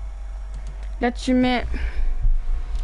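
A young boy speaks briefly into a close microphone.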